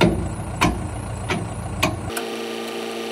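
A tractor engine idles nearby.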